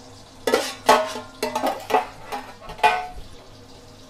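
A metal ladle clatters and scrapes against a wok.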